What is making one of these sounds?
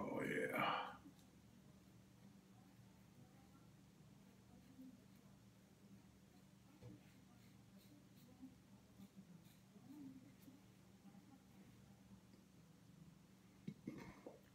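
A safety razor scrapes through lathered stubble.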